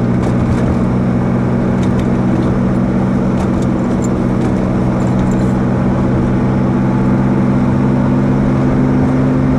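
Wind rushes past an open-top car.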